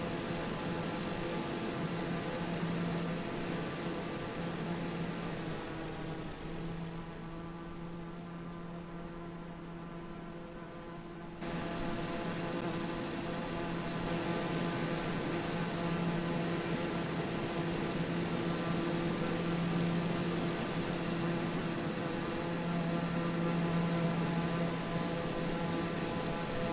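A propeller plane's engine drones steadily, quieter for a while and then loud again.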